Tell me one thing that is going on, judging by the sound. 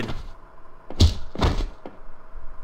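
A punch lands with a heavy thud.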